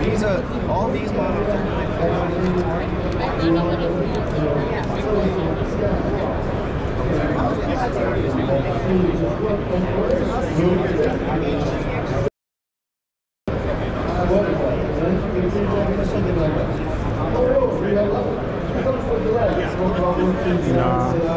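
A crowd of men and women chatters in a large, echoing hall.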